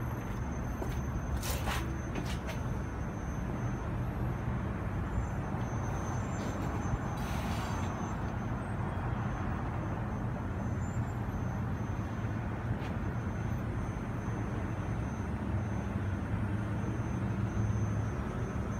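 Distant city traffic hums steadily far below.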